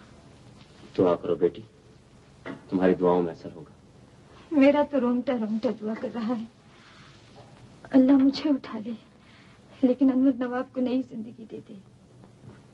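A woman speaks with feeling, close by.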